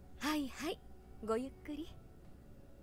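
A woman answers politely.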